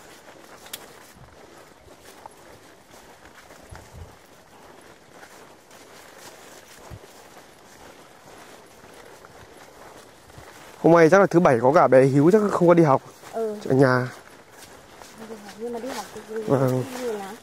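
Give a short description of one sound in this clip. Dry branches rustle and scrape against grass as they are carried along.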